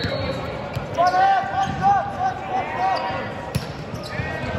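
Young players shout and cheer in an echoing gym.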